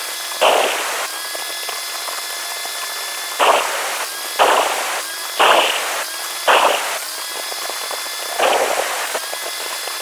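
A saw blade grinds loudly through tile in short bursts.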